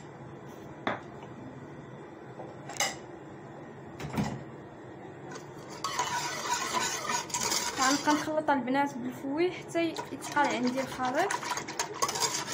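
A metal whisk clinks against the side of a pot.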